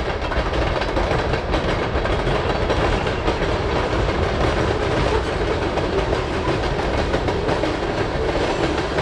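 A long freight train rumbles past on the tracks.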